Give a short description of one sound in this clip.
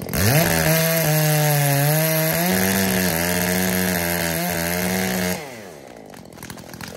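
A chainsaw runs loudly at high speed, then winds down to an idle.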